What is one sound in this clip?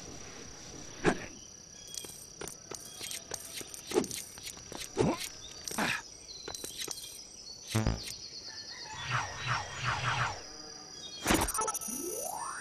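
Short electronic whooshes and chimes sound.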